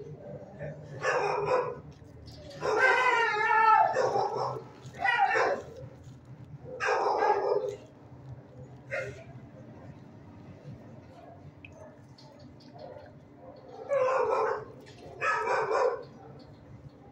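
A dog sniffs and snuffles close by.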